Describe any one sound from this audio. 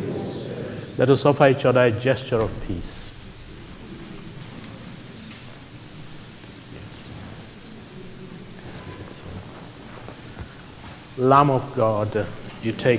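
A man speaks slowly and solemnly through a microphone, in a large echoing room.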